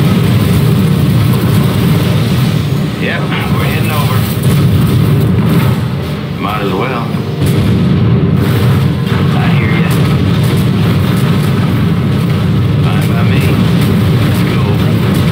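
Explosions boom as missiles strike.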